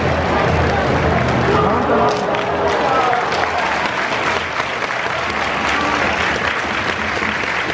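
Players slap hands together in high fives.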